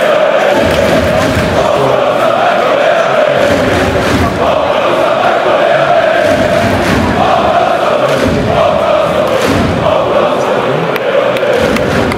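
A large stadium crowd chants and sings loudly in unison, outdoors and echoing.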